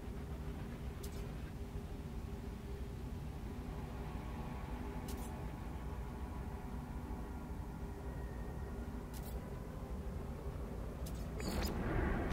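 Soft electronic clicks tick now and then.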